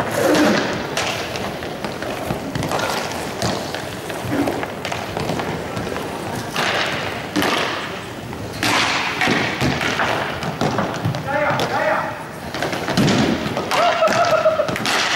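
Skate wheels roll and rumble across a hard floor in a large echoing hall.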